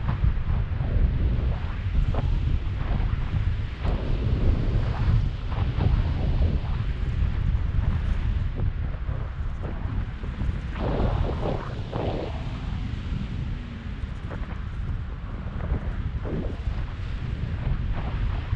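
Wind buffets a microphone throughout a paraglider flight.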